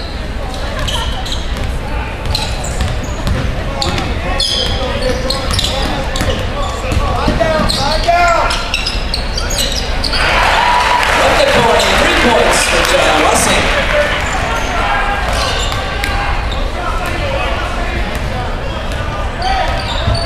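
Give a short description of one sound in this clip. A crowd chatters and shouts in a large echoing gym.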